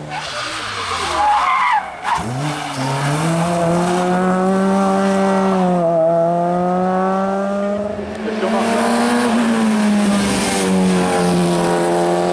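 Another rally car engine revs hard and pops as it rounds a bend.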